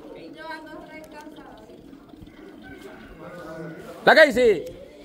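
Young women chatter nearby outdoors.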